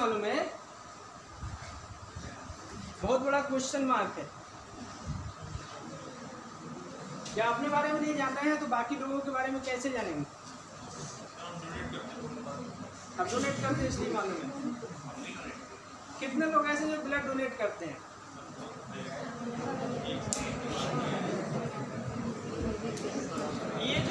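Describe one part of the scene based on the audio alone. A middle-aged man speaks with animation to a group.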